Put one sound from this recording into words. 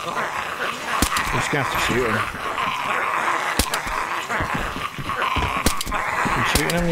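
A pistol fires sharp shots in quick bursts.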